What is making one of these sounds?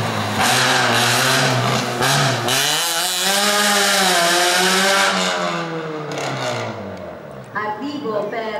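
A race car engine revs hard and roars past, then fades into the distance.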